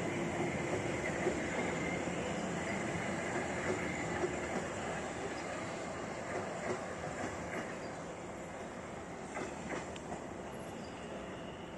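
A train's wheels clatter over the rail joints.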